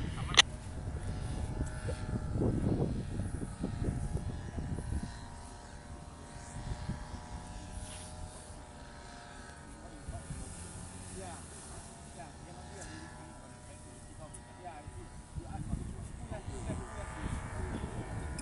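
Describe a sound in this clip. A small motor drones steadily overhead in the distance.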